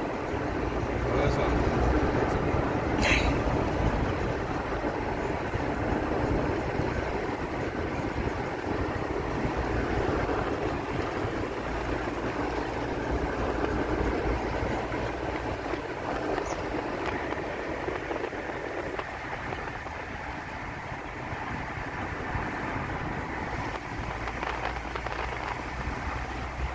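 Wind rushes past an open car window.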